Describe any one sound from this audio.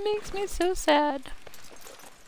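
A horse whinnies close by.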